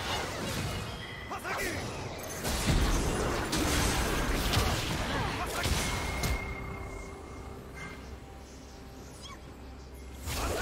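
Spell effects crackle and burst in a game fight.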